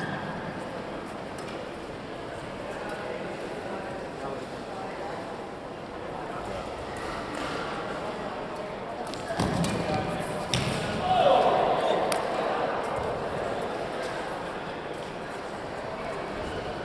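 Sneakers squeak and thud on the court floor.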